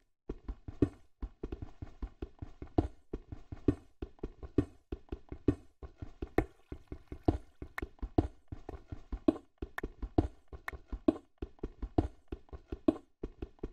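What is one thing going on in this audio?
A pickaxe chips at stone in quick, steady taps.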